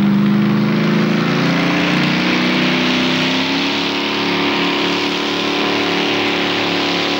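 Tyres churn and spray dirt as a tractor pulls forward.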